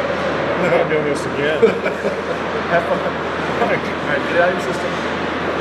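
Pucks clack off hockey sticks.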